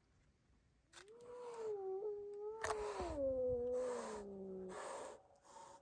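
A cat yowls.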